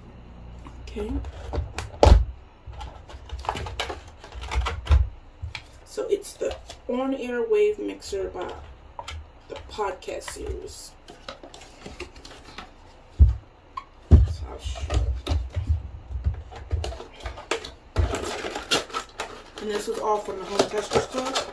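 Cardboard packaging rustles and knocks in a young woman's hands.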